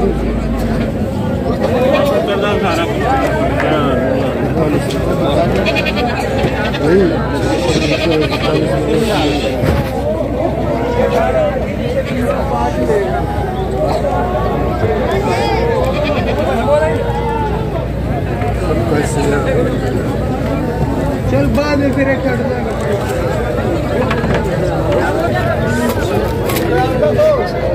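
A crowd of men chatters outdoors.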